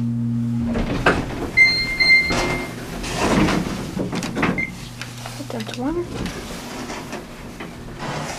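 Elevator doors slide open and shut.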